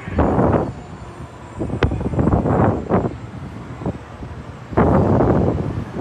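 Wind rushes loudly past a close microphone in bursts.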